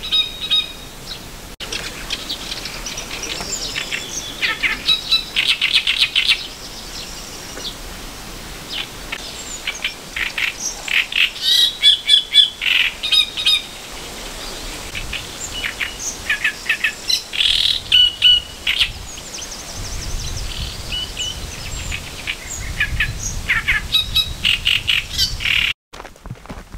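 A small bird sings a harsh, chattering song close by.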